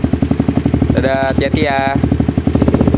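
A motorcycle engine revs sharply a few times.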